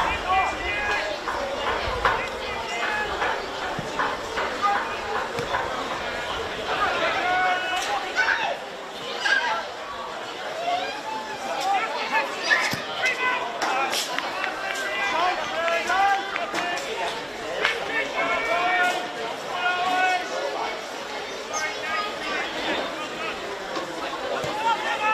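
Young men shout and call to each other across an outdoor field.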